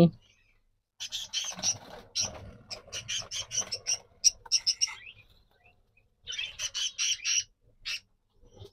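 Small birds chirp and twitter.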